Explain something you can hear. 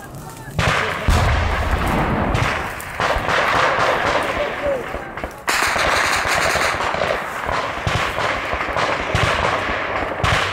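A group of people run over a rocky dirt path.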